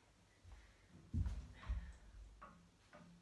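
Footsteps thud on a floor as a young woman walks away.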